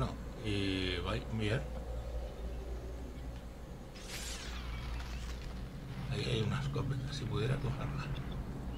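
An elderly man talks with animation close to a microphone.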